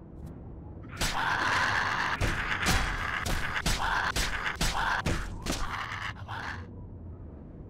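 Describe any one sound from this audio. Fists thud in a flurry of punches against a small creature.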